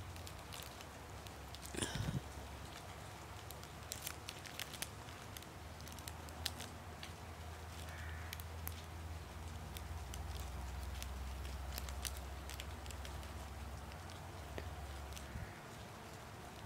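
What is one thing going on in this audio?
Paper rustles softly in a woman's hands.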